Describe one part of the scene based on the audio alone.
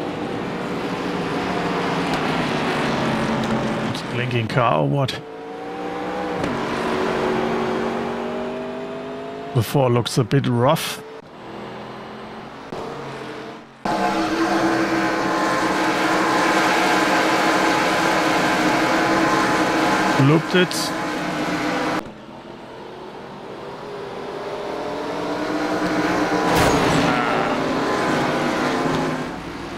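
Racing car engines roar and drone steadily.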